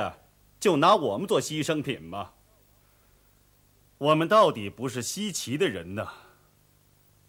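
An elderly man speaks in a deep, calm voice close by.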